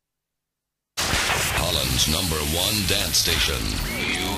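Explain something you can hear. Dance music plays from a spinning record.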